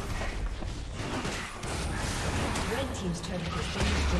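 A stone tower crumbles with a heavy rumble.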